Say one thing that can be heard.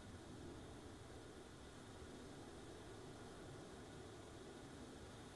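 An aircraft engine drones steadily from inside the cabin.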